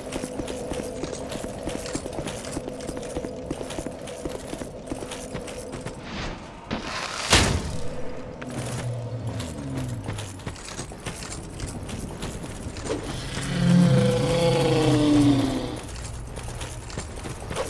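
Armored footsteps clank steadily on hard ground.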